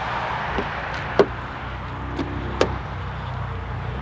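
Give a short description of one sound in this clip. A car door latch clicks as the door is pulled open.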